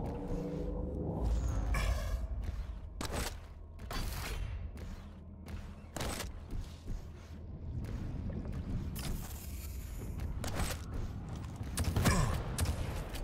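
A gun fires loud blasts.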